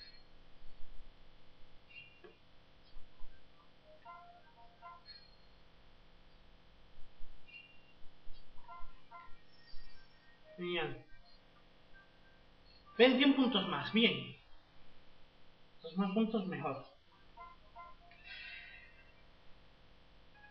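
Short electronic tones and game effects play from a small, tinny speaker.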